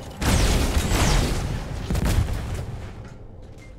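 Rapid gunfire blasts loudly.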